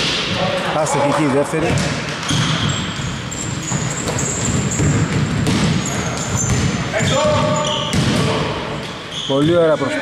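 A basketball thumps on the floor as it is dribbled.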